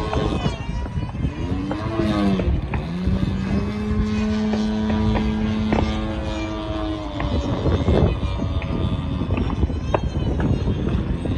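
A small propeller plane's engine buzzes overhead, its pitch rising and falling as it turns.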